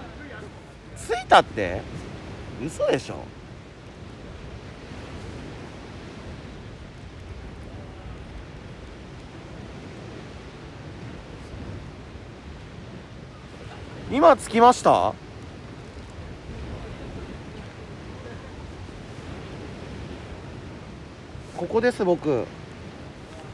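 A man speaks in short bursts close to the microphone.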